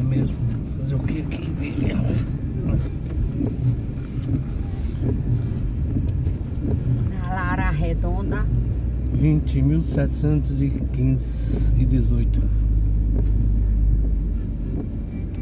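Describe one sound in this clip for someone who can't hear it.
A car engine hums steadily while driving on a wet road.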